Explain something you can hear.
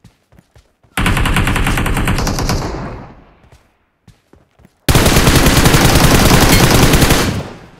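A rifle fires in long, loud rapid bursts.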